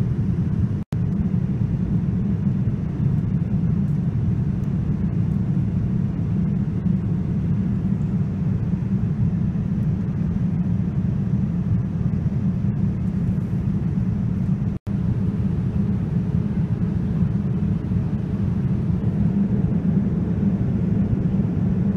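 A jet airliner's engines drone with a steady low roar.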